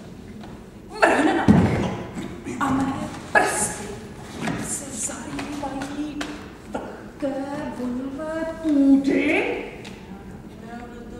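A young woman speaks loudly and with feeling in an echoing hall.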